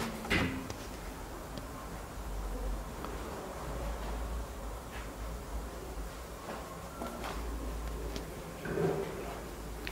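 Hands handle a wooden plaque, which knocks and rubs softly.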